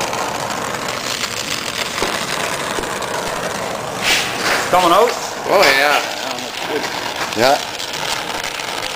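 A gas torch flame hisses and roars steadily.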